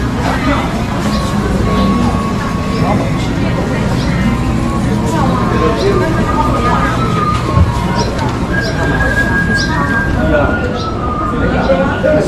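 A crowd of people chatters all around.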